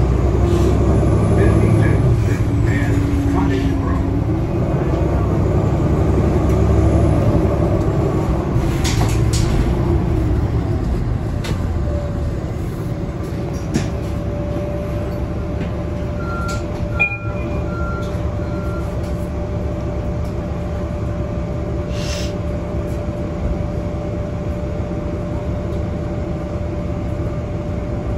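A bus engine rumbles steadily while the bus drives along.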